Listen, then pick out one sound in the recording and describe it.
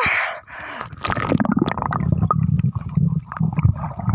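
Water rumbles low and muffled from underwater.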